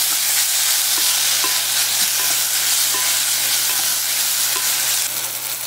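A wooden spoon taps lightly against the side of a bowl.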